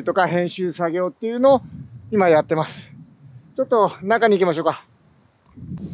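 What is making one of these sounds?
A man talks cheerfully close by.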